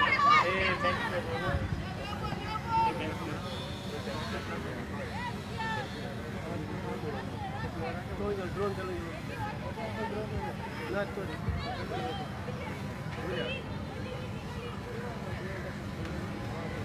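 Spectators chatter and call out in the distance.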